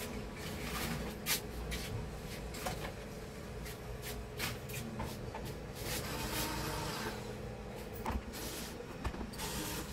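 Things clatter and knock as a man handles equipment.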